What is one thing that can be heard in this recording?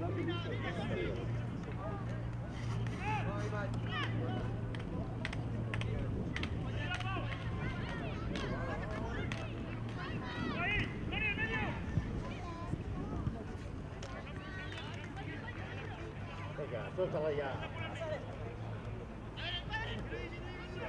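Young players shout and call out across an outdoor pitch.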